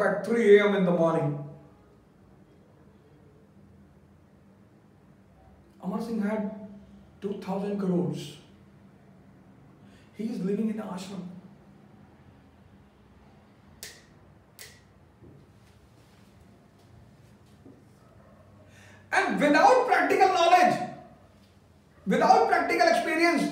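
A middle-aged man speaks with animation into a close microphone, pausing often.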